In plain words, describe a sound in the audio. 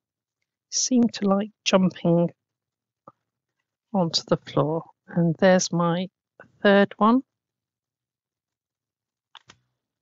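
A paper punch clicks as it cuts through card.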